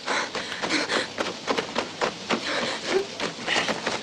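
Footsteps run quickly over dry grass.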